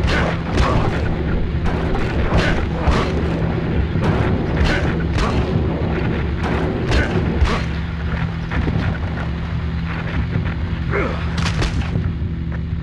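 Punches land with heavy, repeated thuds.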